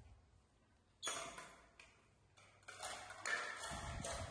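Plastic plates clatter and knock on a hard tiled floor.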